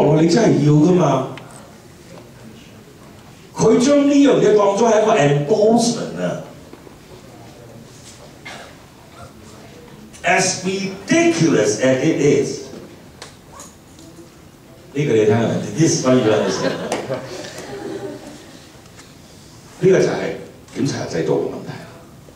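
An older man speaks with animation into a microphone, heard through a loudspeaker in a room.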